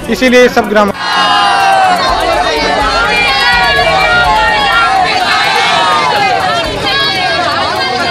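A crowd of men and women shout slogans together outdoors.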